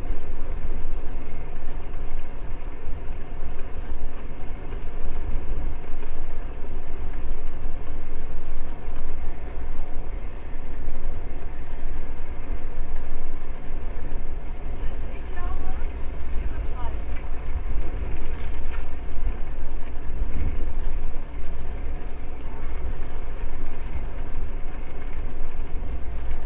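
Tyres roll steadily over brick paving.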